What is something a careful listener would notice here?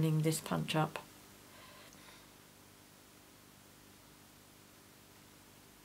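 Thin card rustles softly as hands handle it.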